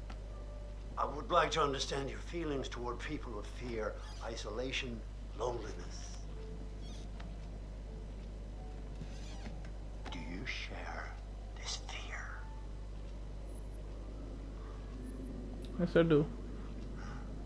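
A middle-aged man speaks intently, close by.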